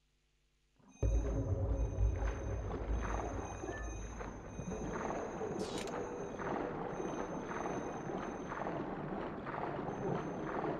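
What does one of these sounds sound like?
A deep underwater rumble swells and churns.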